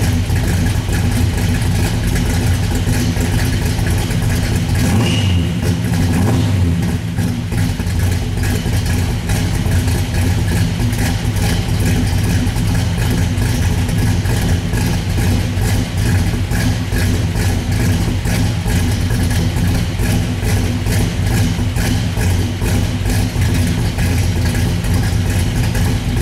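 A car engine idles loudly with a deep, lumpy rumble close by.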